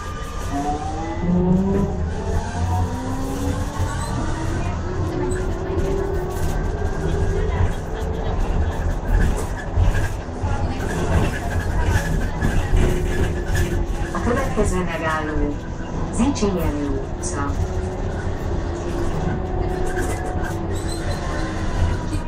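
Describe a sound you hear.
A vehicle engine rumbles steadily while driving along a street.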